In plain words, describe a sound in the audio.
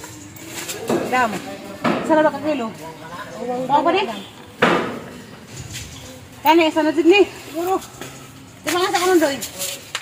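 A woman answers in a lively voice.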